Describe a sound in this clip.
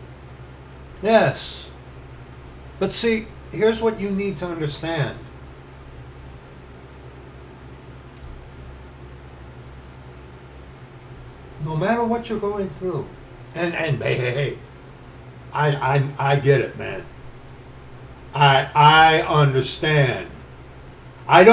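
A middle-aged man speaks with animation close to a microphone, pausing between phrases.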